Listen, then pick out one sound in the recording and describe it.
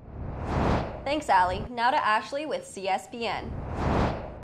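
A young woman speaks brightly and clearly.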